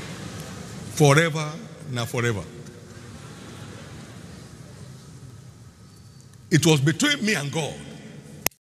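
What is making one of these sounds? An older man speaks loudly and with animation through a microphone in a large hall.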